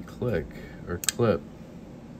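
A folding knife's blade snaps shut with a sharp click.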